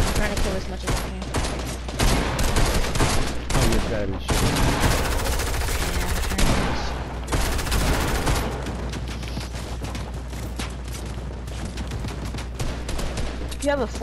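Rapid building and editing clatters with sharp wooden knocks.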